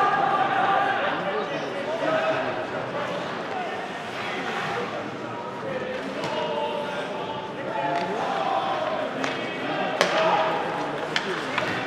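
A crowd of spectators murmurs and calls out.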